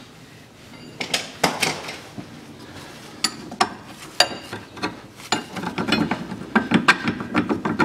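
A metal tool clicks and clanks against a car's suspension parts.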